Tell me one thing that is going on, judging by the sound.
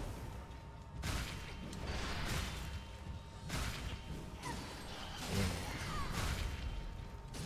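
Blades slash and clang in heavy, repeated strikes.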